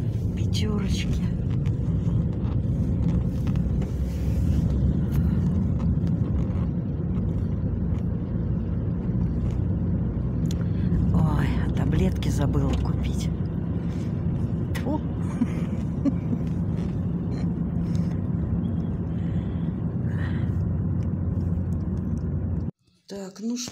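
A car engine hums and tyres rumble on a wet road from inside the car.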